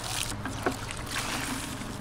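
A soapy sponge squelches as it is squeezed.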